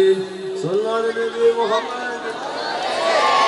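A young man sings through a microphone with a long, wavering melody.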